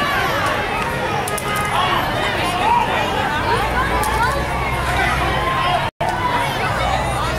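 Many young girls cheer and shout excitedly nearby.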